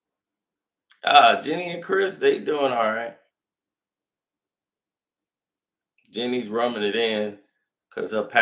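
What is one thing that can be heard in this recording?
A middle-aged man speaks calmly and closely into a microphone, in short bursts with pauses.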